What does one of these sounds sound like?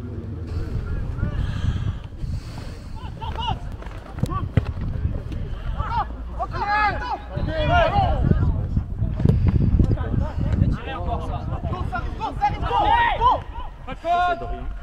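Young men shout to each other across an open field, some way off.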